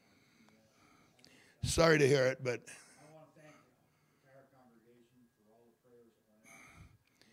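An elderly man speaks into a microphone, calmly and then briefly loudly.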